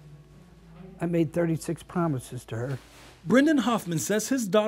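An elderly man speaks calmly and with feeling close to a microphone.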